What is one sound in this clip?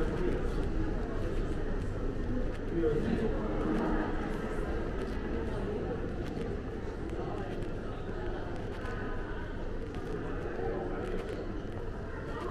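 Distant voices murmur through a large echoing hall.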